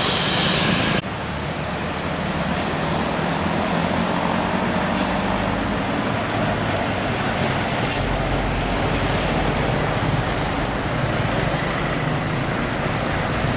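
A bus engine rumbles as the bus pulls away up the road.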